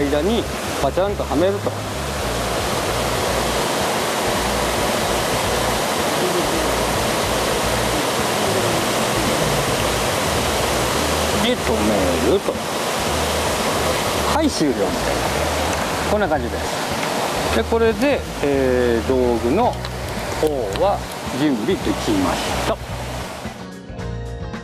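A waterfall rushes loudly and steadily nearby.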